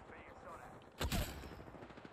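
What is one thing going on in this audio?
A single gunshot cracks sharply.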